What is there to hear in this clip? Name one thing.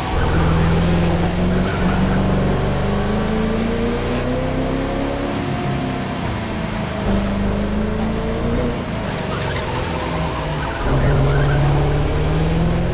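A sports car engine roars at high revs, rising and falling as the car speeds and slows.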